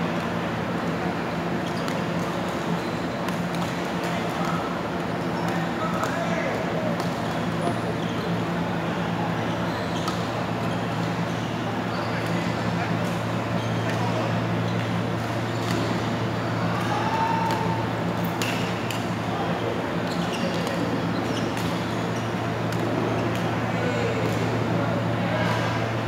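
Shuttlecocks are struck with rackets, with sharp clicks echoing in a large hall.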